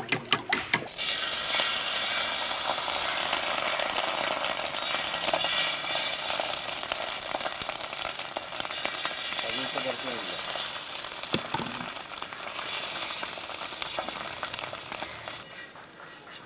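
Egg batter sizzles in a hot pan.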